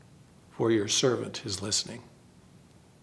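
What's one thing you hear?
An elderly man speaks calmly and close up.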